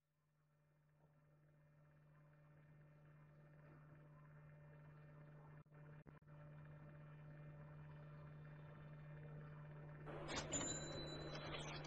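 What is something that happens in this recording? An electric bass guitar plays a low, steady note that slowly swells louder.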